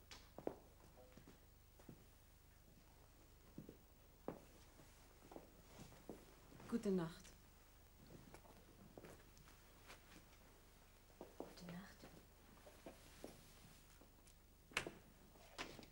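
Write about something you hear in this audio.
Footsteps in high heels knock on a wooden floor.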